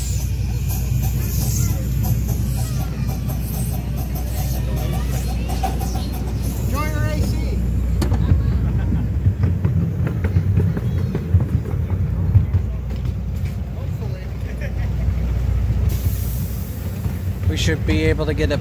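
A small open train car rumbles and rattles along the track.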